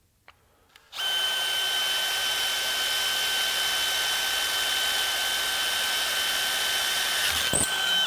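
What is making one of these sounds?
A cordless drill whirs steadily as it bores through metal.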